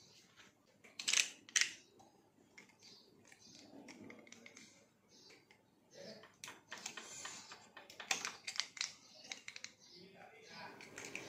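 Small plastic parts click and rattle close by.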